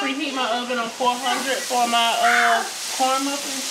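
Hot oil bubbles and sizzles in a deep fryer.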